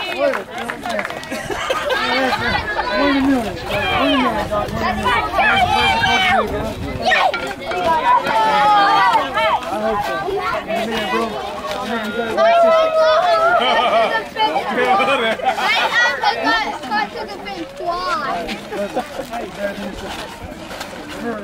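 A crowd of adults and children chatter and call out nearby, outdoors.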